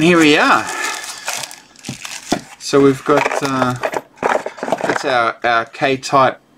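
A cardboard tray rustles and scrapes as it is handled.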